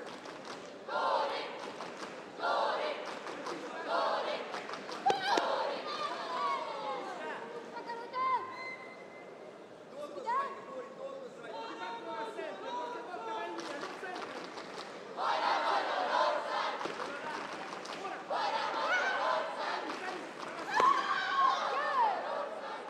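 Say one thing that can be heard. Young women fighters shout sharply as they strike.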